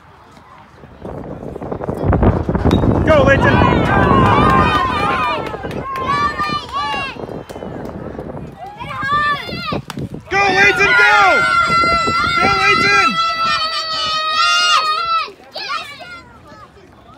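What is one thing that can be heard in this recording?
A crowd of spectators cheers and shouts excitedly nearby.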